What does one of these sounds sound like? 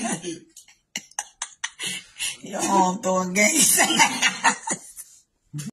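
A young man laughs and talks playfully close by.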